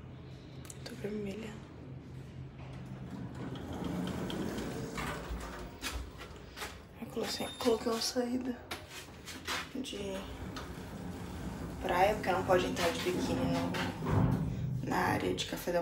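A young woman speaks close to the microphone in a casual voice.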